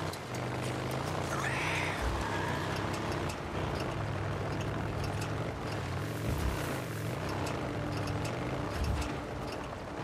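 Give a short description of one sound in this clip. A motorcycle engine hums steadily, rising and falling in pitch.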